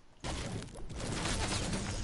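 A pickaxe strikes rock with sharp knocks.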